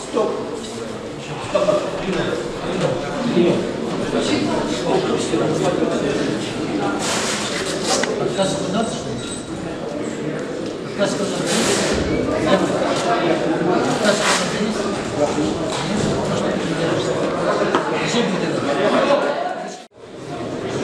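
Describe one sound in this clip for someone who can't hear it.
A crowd of men and women chatters in a large echoing hall.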